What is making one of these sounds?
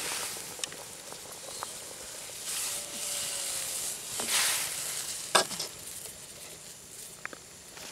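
A knife scrapes against a metal pan.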